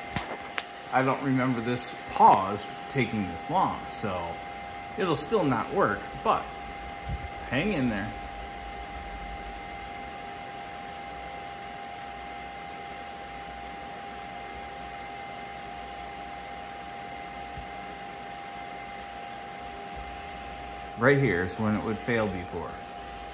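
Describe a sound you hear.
A small fan hums steadily.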